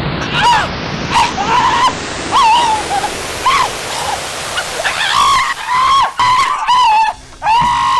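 A man shouts and cries out loudly, close by.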